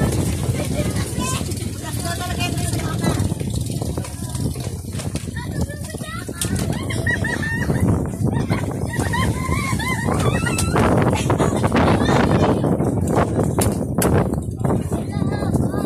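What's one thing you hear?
Children chatter and call out nearby outdoors.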